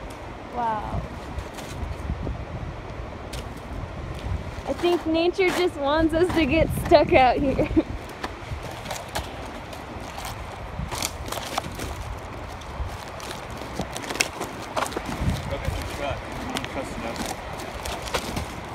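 Footsteps crunch on dry wood chips.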